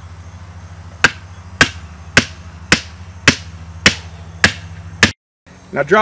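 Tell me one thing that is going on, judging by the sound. A hammer strikes a metal post in a steady series of sharp clangs.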